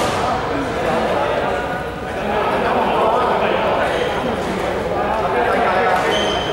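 Sneakers squeak on a hard court in a large echoing hall.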